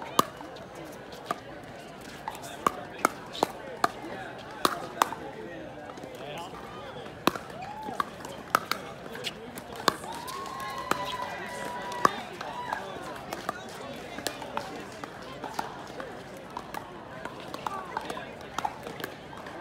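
Shoes squeak and scuff on a hard court.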